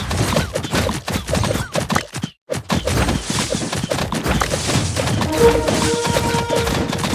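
Quick game sound effects pop and clink over and over.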